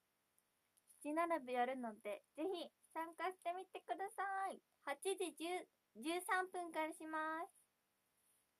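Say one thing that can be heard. A young woman speaks close to a phone microphone.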